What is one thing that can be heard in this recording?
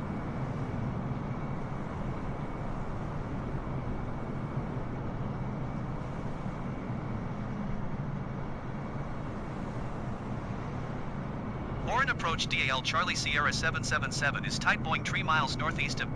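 Jet engines roar steadily as an airliner flies low.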